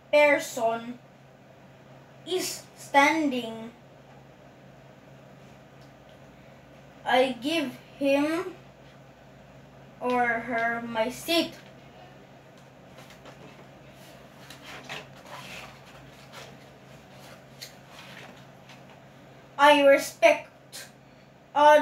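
A young boy reads aloud slowly close by, with long pauses.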